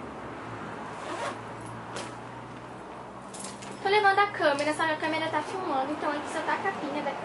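A fabric bag rustles and shuffles as hands dig into it.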